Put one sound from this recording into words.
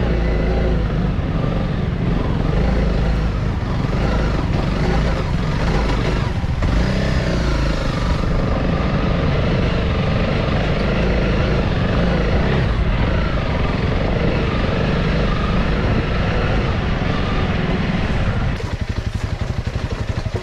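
Tyres rattle and crunch over a rough dirt trail.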